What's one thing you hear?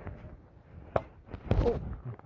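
A plastic bat smacks a plastic ball.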